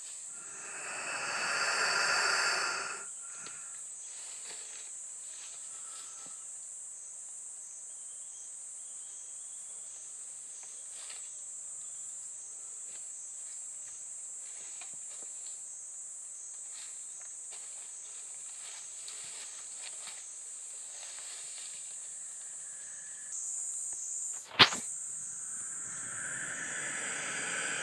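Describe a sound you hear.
Dry leaves rustle and crunch as large lizards move about.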